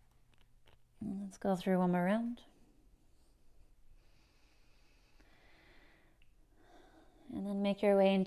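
A woman speaks calmly and slowly, drawing out her words.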